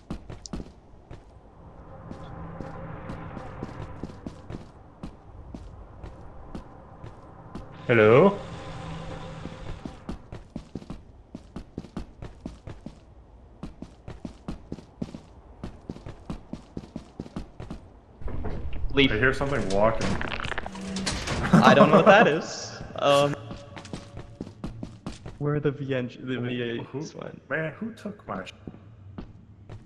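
Footsteps clank on a hard floor.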